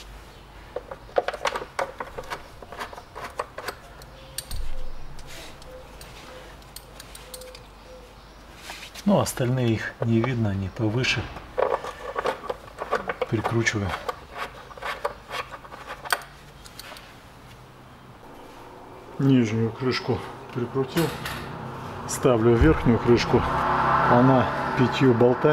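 Metal parts click and clink under a mechanic's hand.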